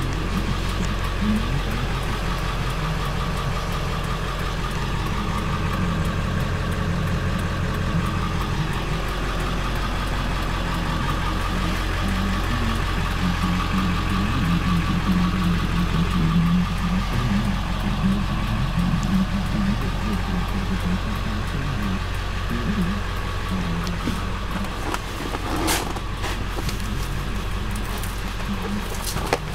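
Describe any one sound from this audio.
A vehicle engine idles with a steady low hum.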